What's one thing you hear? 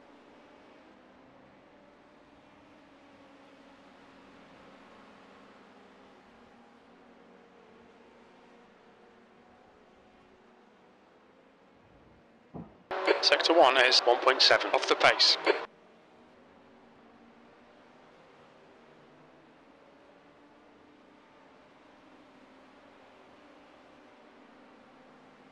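A race car engine hums steadily.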